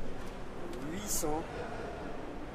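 A man talks quietly nearby in a large echoing hall.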